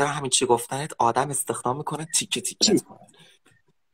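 A young man speaks quickly and with animation over an online call.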